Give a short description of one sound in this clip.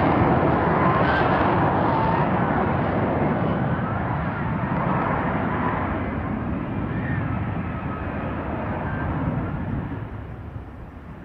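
A jet engine roars loudly nearby, then slowly fades.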